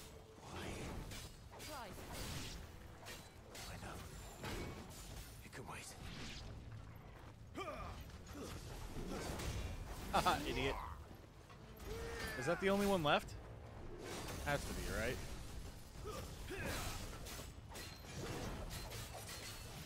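Swords clash and clang.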